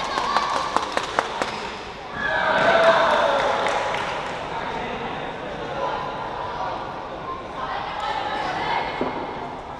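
A large crowd of spectators cheers and chatters in a big echoing hall.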